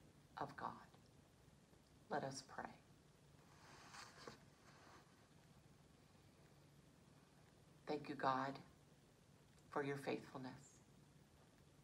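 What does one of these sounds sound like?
A middle-aged woman speaks calmly and slowly, close by, with pauses.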